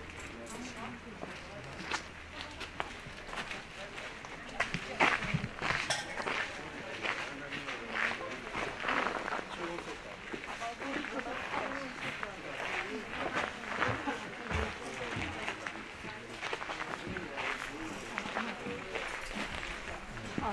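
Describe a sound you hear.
Men and women chat quietly nearby outdoors.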